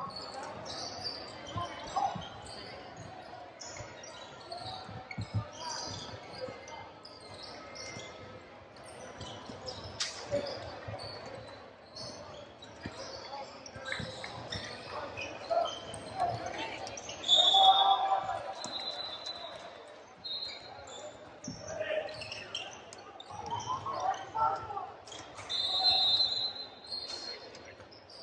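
Sneakers squeak sharply on a wooden court in a large echoing gym.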